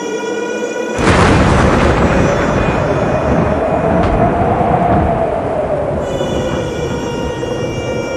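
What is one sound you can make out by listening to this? Thunder crashes and rumbles loudly.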